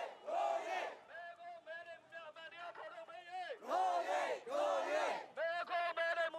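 A crowd of protesters chants loudly in unison outdoors.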